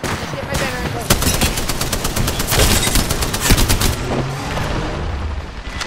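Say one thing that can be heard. A rapid-firing gun shoots in fast bursts.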